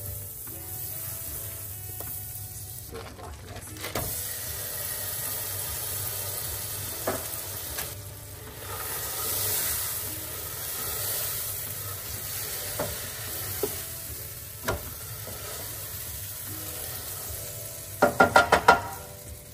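Butter sizzles in a hot pan.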